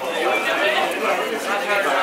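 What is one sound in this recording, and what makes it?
A drink pours into a glass.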